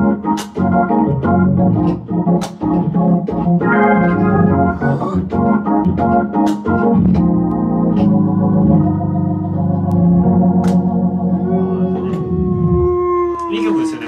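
An electric organ plays a lively, chord-heavy tune with sharp key clicks.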